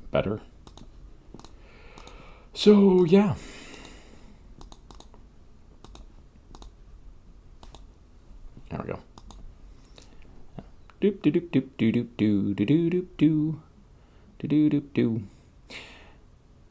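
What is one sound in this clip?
A mouse clicks several times.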